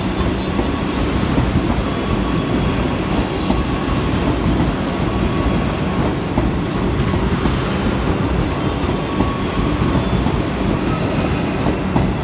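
A high-speed train rushes past close by with a loud, steady roar.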